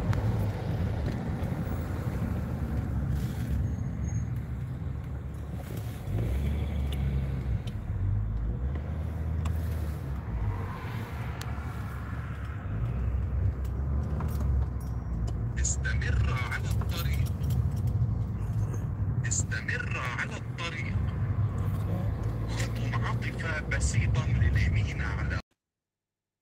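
A car engine hums steadily with a low rumble of tyres on the road inside the car.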